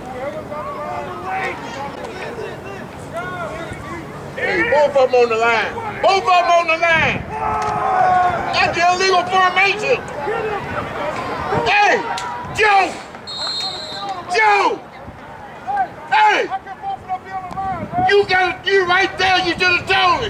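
Men and women in a crowd shout and cheer excitedly close by, outdoors.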